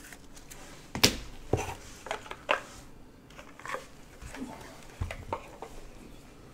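Cardboard boxes knock and tap against each other.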